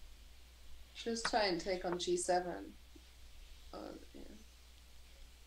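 A young woman speaks casually through a microphone.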